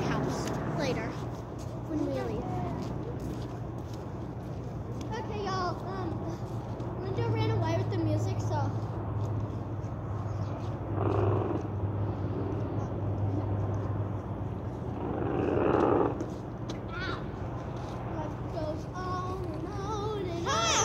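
Young women talk and call out to each other outdoors at a distance.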